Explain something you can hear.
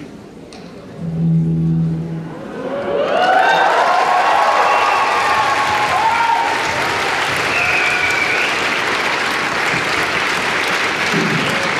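An electric guitar plays a melody through an amplifier.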